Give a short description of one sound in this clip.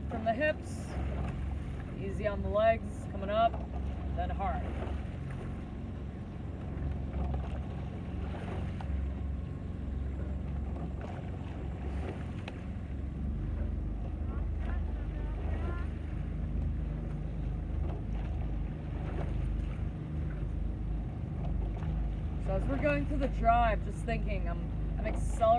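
Oars splash and dip rhythmically in water.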